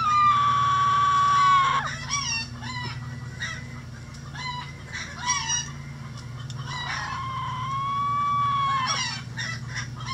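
A hen gives long, drawn-out calls.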